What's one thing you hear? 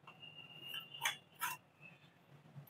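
A knife taps against a metal baking pan.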